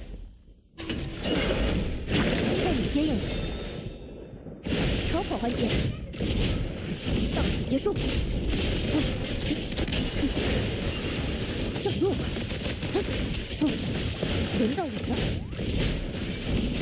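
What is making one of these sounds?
Explosive blasts and slashing impacts crash rapidly during a fight.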